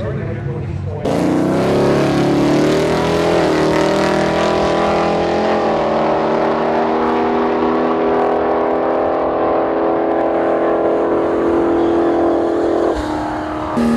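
A drag car's engine roars loudly as it launches and speeds away down the track.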